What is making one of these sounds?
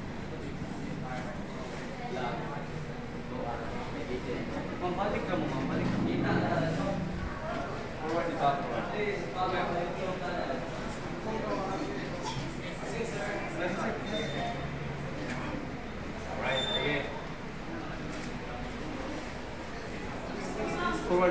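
Several people talk nearby.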